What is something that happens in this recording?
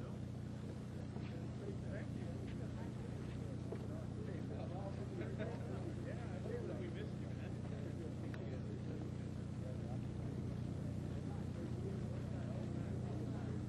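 Men talk and greet each other cheerfully outdoors.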